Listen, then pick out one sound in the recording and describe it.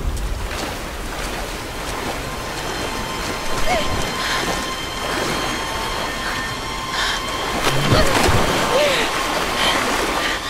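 A person splashes through deep water.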